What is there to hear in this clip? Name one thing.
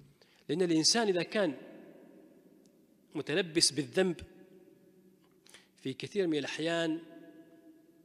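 A middle-aged man speaks calmly into a microphone in a slightly echoing room.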